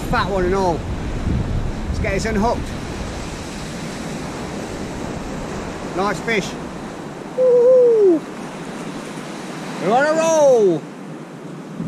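A gull calls.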